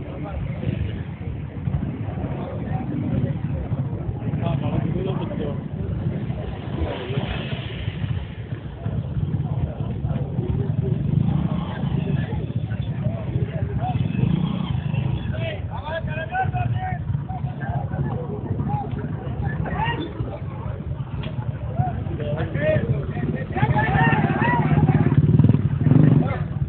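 A crowd of men chatter and call out outdoors nearby.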